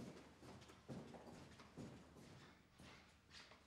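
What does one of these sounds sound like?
Footsteps click on a hard floor, walking away.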